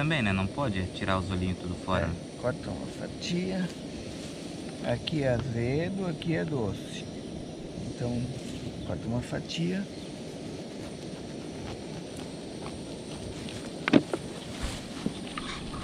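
A knife cuts and scrapes through a tough fruit rind.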